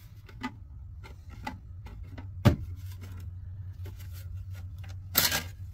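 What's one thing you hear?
Metal pliers clink against a hard surface.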